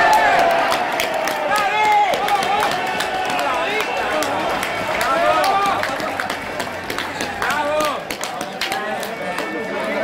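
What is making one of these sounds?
A spectator claps his hands close by.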